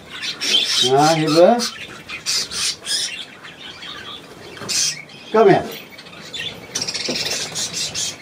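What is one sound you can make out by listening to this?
Budgerigars chirp and chatter.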